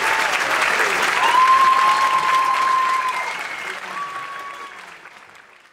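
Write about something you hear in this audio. Audience members whistle loudly.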